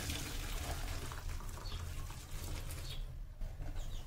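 Water drips and trickles through a metal strainer.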